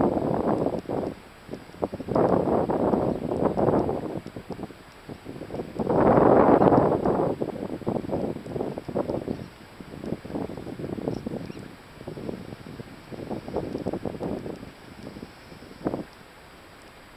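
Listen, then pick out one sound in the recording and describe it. Wind gusts blow hard outdoors, rumbling close by.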